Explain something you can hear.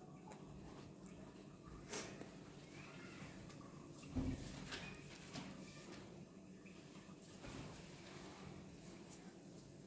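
Footsteps walk across a room.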